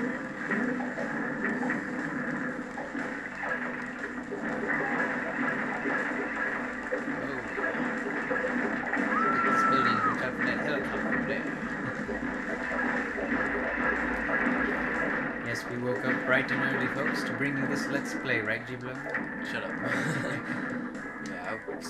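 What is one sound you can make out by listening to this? Video game sound effects of smashing and crumbling buildings crash again and again.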